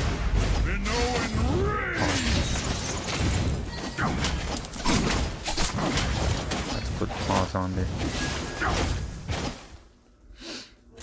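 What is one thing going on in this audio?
Magic blasts, clashes and crackling spell effects burst rapidly in a busy fight.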